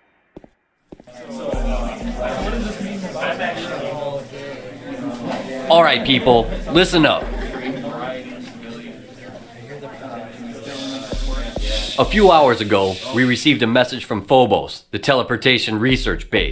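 A middle-aged man speaks steadily and calmly.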